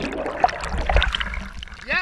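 A young man gasps for breath at the water's surface.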